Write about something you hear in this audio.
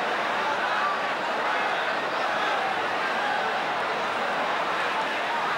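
A large crowd murmurs and chatters steadily in a big echoing hall.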